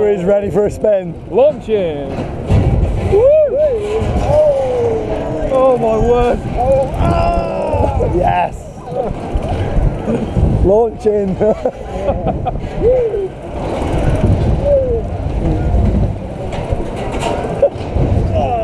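A roller coaster rumbles and rattles along its track.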